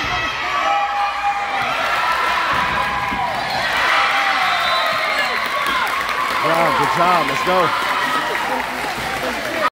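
Young girls call out and shout to each other in an echoing gym.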